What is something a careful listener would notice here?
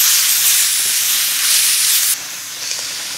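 Vegetables sizzle as they are stir-fried in a wok.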